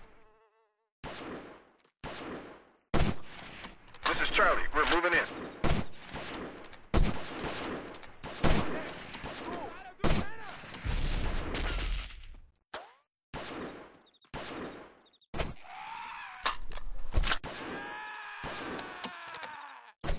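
Sharp rifle shots crack one after another, each followed by a short echo.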